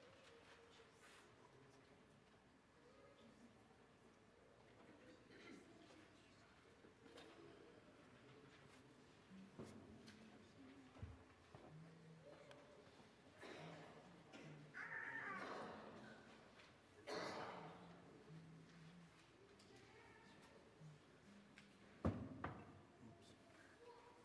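Handbells ring softly in a quiet, echoing hall.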